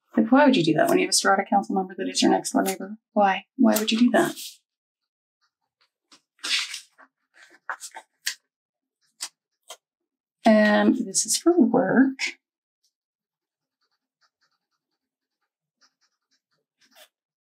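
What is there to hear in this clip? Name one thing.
Stiff paper rustles and crinkles softly close by.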